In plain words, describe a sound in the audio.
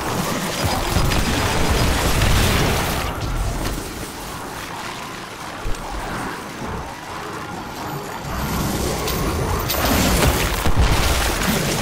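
Electric energy crackles and bursts loudly.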